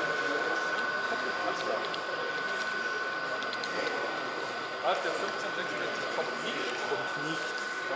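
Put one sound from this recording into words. A model train rolls along its tracks with a steady whirring hum.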